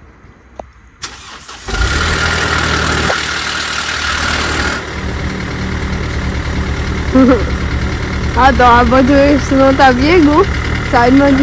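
A car engine starts and idles with a steady hum.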